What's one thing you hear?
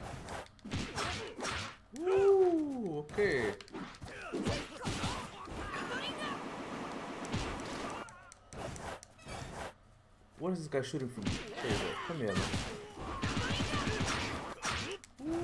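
Hits and whooshes of a game fight land in quick succession.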